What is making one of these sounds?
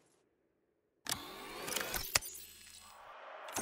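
A metal locker door slides open with a whoosh.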